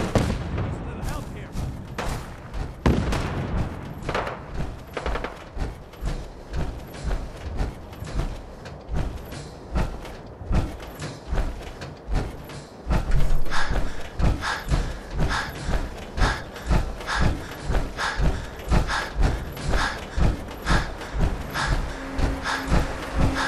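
Heavy metal footsteps thud steadily on hard ground.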